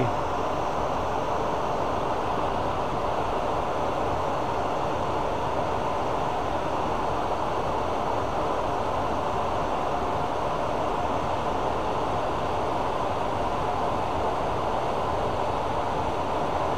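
Sandpaper rubs against a spinning workpiece with a soft rasping.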